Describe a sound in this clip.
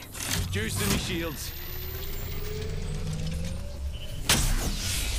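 A device charges with a rising electronic hum.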